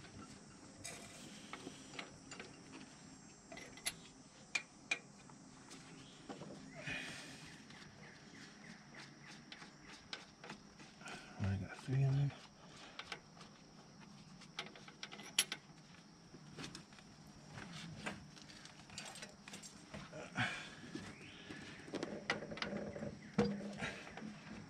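A metal wrench clicks and clinks against engine parts.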